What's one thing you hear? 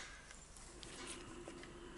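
A fork scrapes food in a plastic tray.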